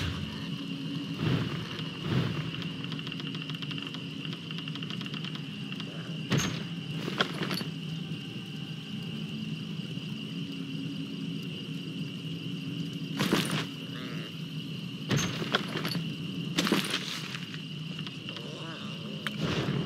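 A magical portal hums and crackles steadily.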